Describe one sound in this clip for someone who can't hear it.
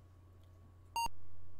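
A computer game beeps.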